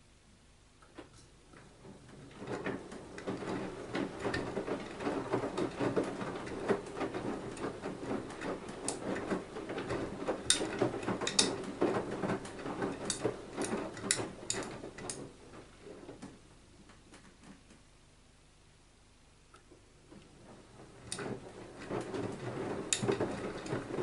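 Laundry clicks and knocks against a washing machine drum.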